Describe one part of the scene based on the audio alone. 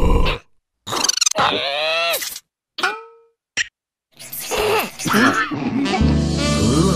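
A second cartoon creature gasps and chatters in a high voice.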